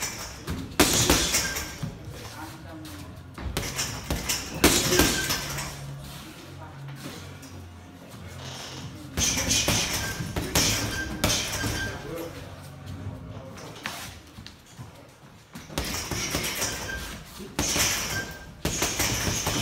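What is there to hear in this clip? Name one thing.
Gloved fists thud repeatedly against a heavy punching bag.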